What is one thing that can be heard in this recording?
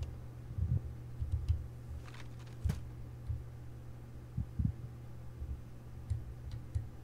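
Footsteps thud softly on a stone floor.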